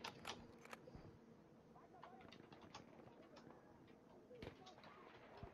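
Rifle shots crack in short bursts.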